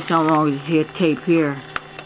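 A plastic cassette clicks as a hand handles it.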